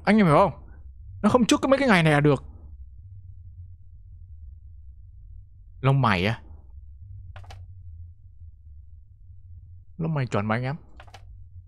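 A young man talks in short bursts close to a microphone, with animation.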